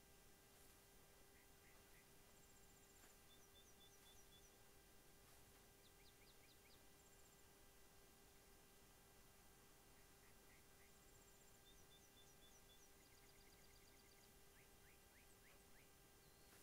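Footsteps rustle slowly through dry grass.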